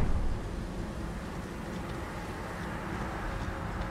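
Footsteps crunch on dry ground and grass.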